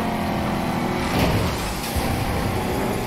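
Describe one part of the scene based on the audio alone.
A car swooshes past closely.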